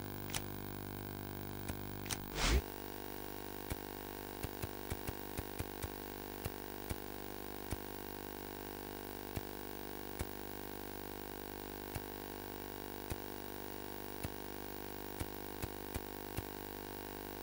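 Soft menu clicks tick as pages are flipped.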